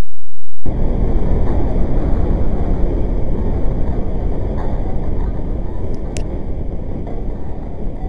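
Metal scrapes and grinds with a harsh crunch.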